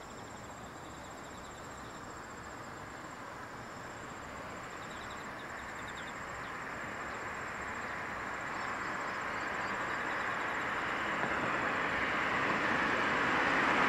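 A distant train rumbles closer along the track, growing slowly louder.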